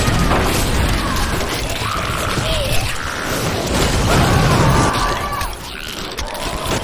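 Game spells crackle and blast in rapid bursts.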